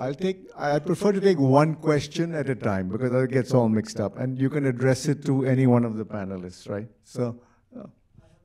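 A man speaks through a microphone with animation.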